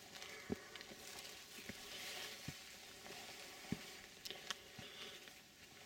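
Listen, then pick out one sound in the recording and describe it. Footsteps thud on a grassy path.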